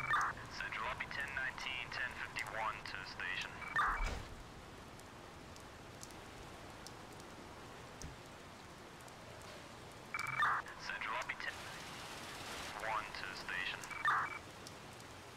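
A fire engine siren wails in short bursts.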